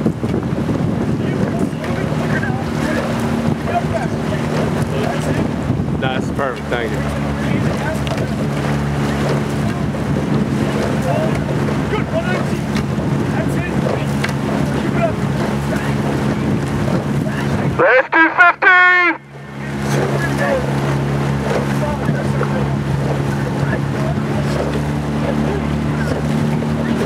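Oar blades splash and churn in the water as a rowing crew strokes.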